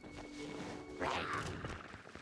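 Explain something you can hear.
Blows and impacts ring out in a fight.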